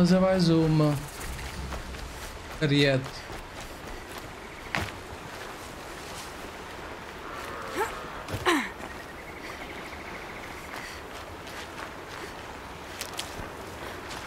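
Footsteps rustle through leafy undergrowth.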